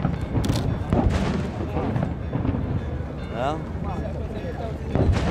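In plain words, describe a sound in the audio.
Fireworks boom in the distance.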